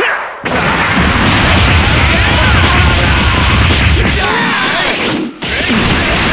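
Punches and kicks land with sharp, rapid thuds and cracks.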